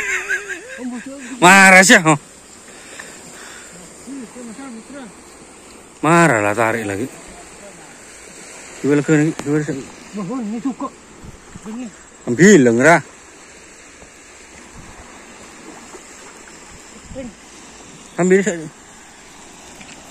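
Water laps softly at a riverbank.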